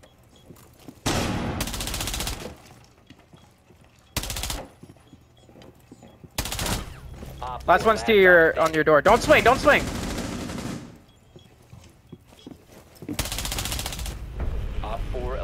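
Bursts of rapid gunfire ring out in a video game.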